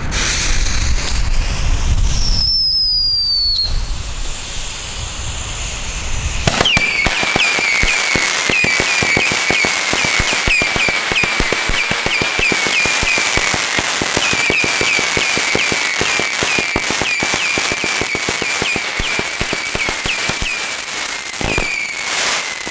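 A fountain firework hisses and crackles with rapid pops.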